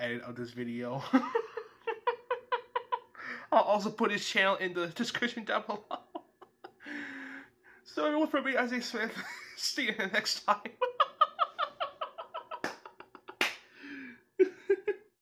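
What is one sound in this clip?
A young man laughs hard and loudly close to a microphone.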